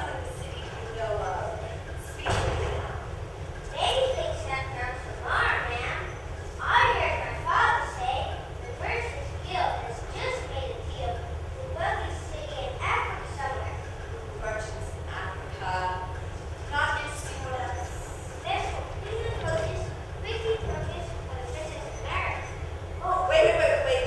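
A young woman speaks with animation in a theatrical voice.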